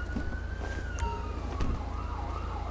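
A car door opens and thumps shut.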